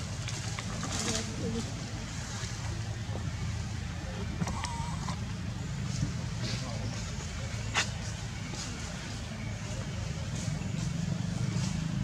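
Leaves rustle as monkeys climb through branches.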